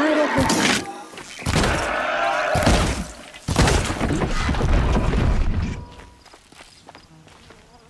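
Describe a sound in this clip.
A bowstring twangs as arrows are shot.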